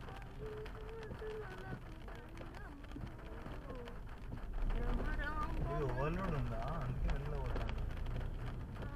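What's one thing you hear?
Raindrops tap on a windscreen.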